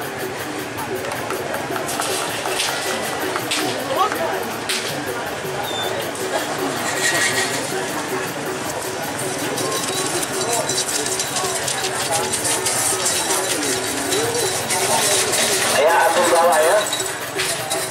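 A crowd of onlookers shouts and cheers outdoors.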